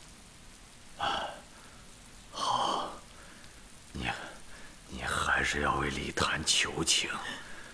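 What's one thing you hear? An older man speaks slowly and close by.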